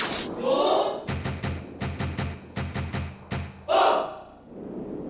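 A short cheerful game jingle plays.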